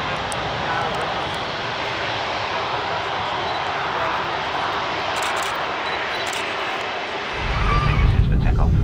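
Jet engines of an airliner roar and whine steadily as it taxis past nearby.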